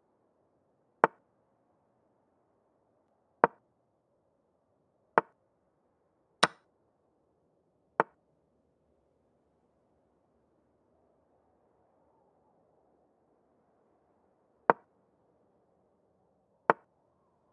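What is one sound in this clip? Chess pieces click onto a board in short, sharp taps, now and then.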